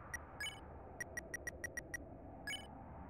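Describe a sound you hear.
Quick electronic blips tick in a steady run as a game menu cursor moves.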